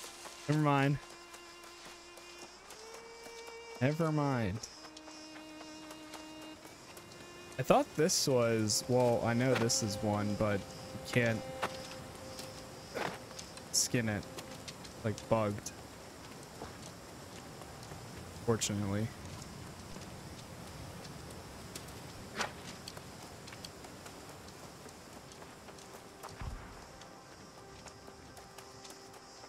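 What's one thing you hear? Footsteps run over earth and grass.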